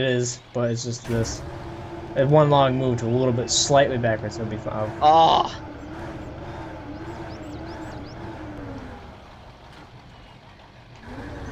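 A hydraulic crane arm whirs as it swings.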